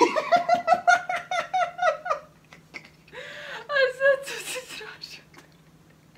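A young man laughs loudly and heartily, close by.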